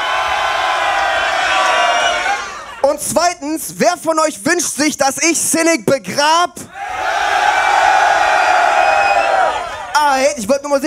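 A crowd cheers and roars loudly in a large echoing hall.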